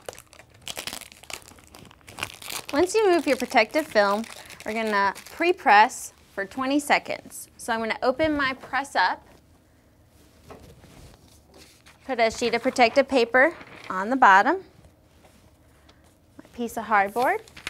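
Paper rustles as a woman handles a sheet.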